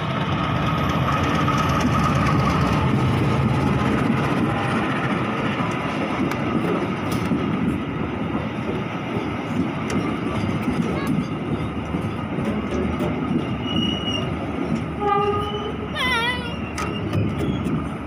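Train carriages roll and clatter over the rails.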